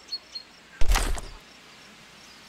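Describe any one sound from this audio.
A rifle shot booms and echoes across open country.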